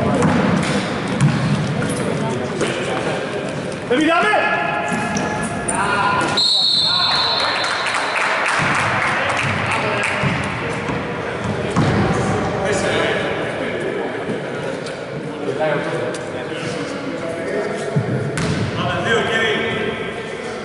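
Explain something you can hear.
Young men shout and call out in a large echoing hall.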